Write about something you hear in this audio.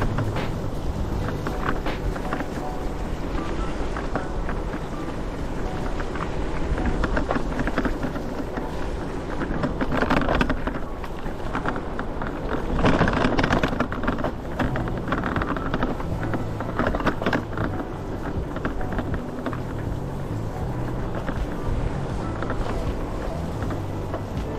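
Wheels roll steadily over rough, wet pavement.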